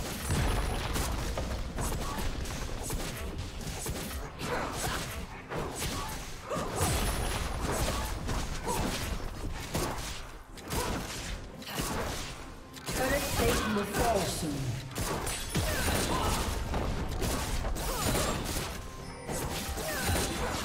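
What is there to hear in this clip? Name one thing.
Magic blasts and weapon clashes from a video game battle ring out.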